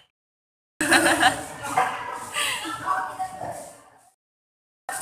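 A young girl talks and laughs softly close by.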